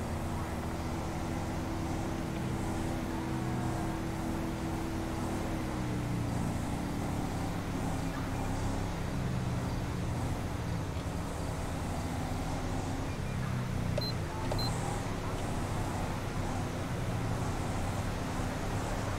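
A car engine hums steadily as the car drives along a highway.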